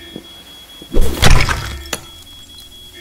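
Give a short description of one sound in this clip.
A metal bar smashes against a hard object with a loud crash.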